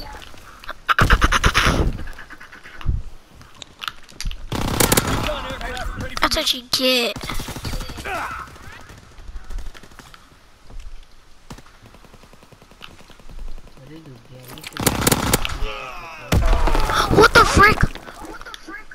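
A rifle fires in rapid bursts of gunshots.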